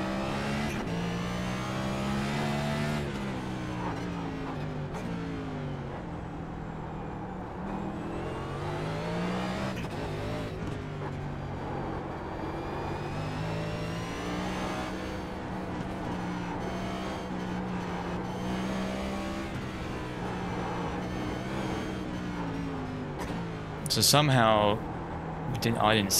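A race car engine roars steadily, rising and falling in pitch as the car speeds up and brakes through corners.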